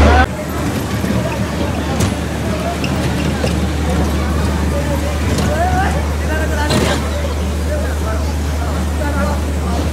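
Bumper cars hum as they drive.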